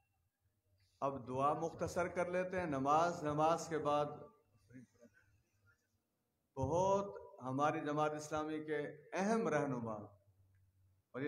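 A man speaks loudly and with emphasis into a microphone, with pauses between phrases.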